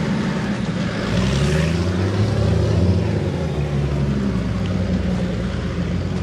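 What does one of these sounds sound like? A tractor engine revs up and down nearby.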